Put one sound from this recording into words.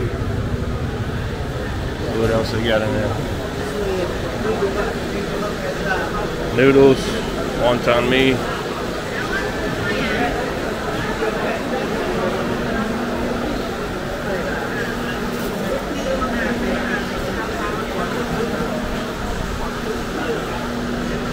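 A crowd chatters steadily in a busy, echoing room.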